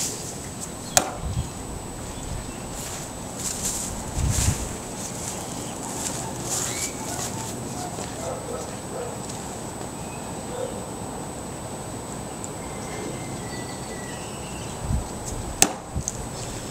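A hatchet thunks sharply into a wooden stump.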